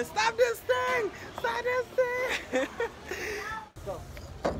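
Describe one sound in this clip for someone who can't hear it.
A young man talks excitedly close by.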